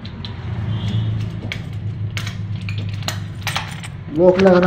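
Metal clinks and rattles.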